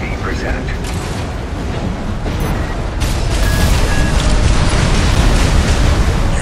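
Thrusters roar as a giant robot boosts through the air.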